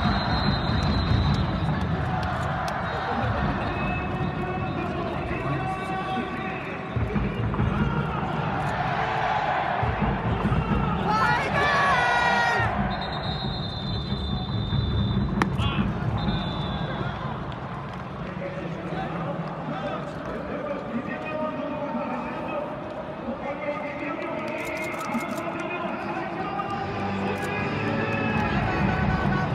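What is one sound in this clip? A large crowd murmurs and chatters throughout a big echoing stadium.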